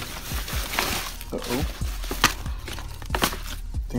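A plastic disc case clicks and clacks.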